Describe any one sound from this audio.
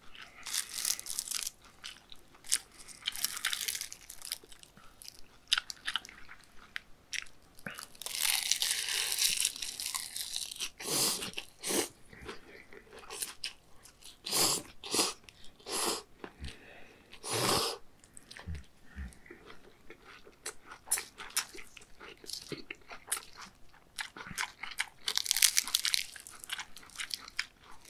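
Crisp seaweed crackles as chopsticks pick it up.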